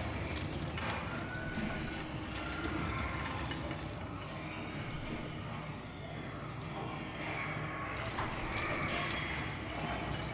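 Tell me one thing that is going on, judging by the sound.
Metal shelving on small wheels rolls and rattles across a tiled floor.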